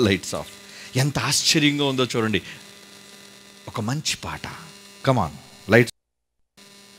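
A man speaks with animation through a microphone on stage.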